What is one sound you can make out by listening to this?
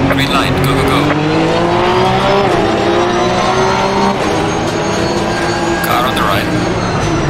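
A race car engine roars and climbs in pitch as the car speeds away.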